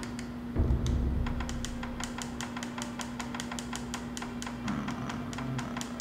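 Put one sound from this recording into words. Soft menu clicks tick quickly, one after another.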